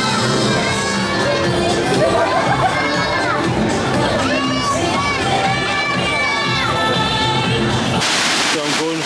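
Cheerful music plays loudly over loudspeakers.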